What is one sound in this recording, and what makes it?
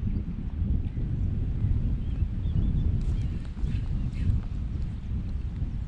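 Wind blusters loudly against the microphone outdoors.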